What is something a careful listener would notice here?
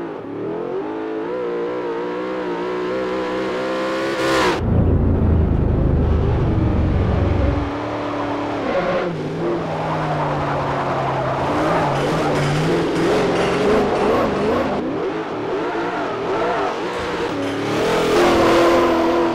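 A sports car engine roars loudly as the car accelerates and shifts gears.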